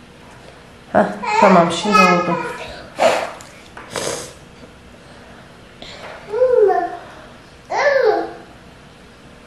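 A young girl speaks softly and close by.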